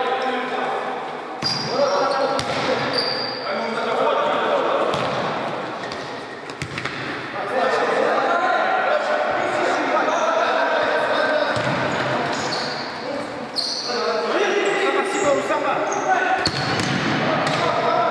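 A ball is kicked with dull thuds in an echoing hall.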